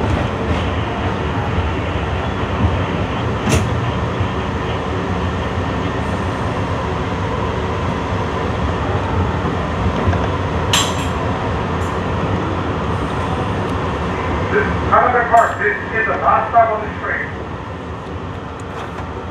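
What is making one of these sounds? A subway train rumbles steadily along the tracks through a tunnel.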